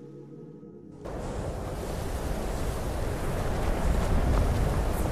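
Wind blows over snowy ground.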